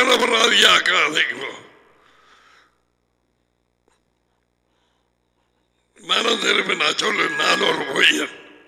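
A middle-aged man speaks calmly through a headset microphone.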